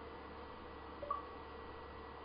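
A short electronic notification chime sounds.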